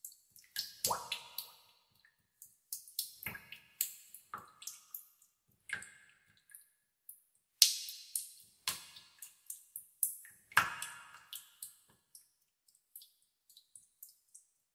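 Water drops fall into still water with sharp, ringing drips and plinks.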